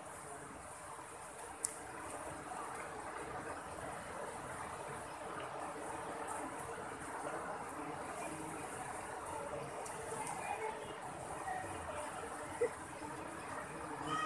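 A shallow river rushes and splashes over rocks.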